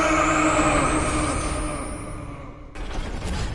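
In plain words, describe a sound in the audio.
A loud electronic energy blast roars and slowly fades.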